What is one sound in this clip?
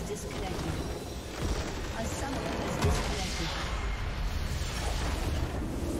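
A game's base explodes with a deep crumbling blast.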